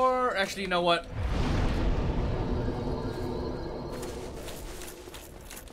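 A deep rushing whoosh swells and slowly fades.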